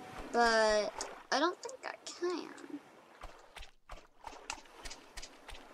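A paddle splashes through calm water.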